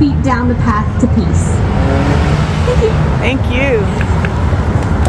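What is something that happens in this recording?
A young woman speaks into a microphone outdoors.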